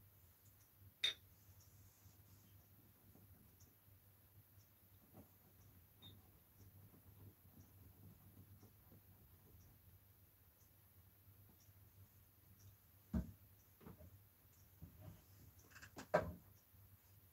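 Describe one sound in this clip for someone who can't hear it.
Small tools knock now and then against a hard tabletop.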